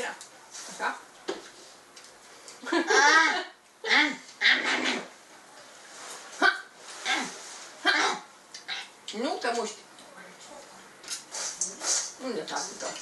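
A woman speaks calmly and gently up close.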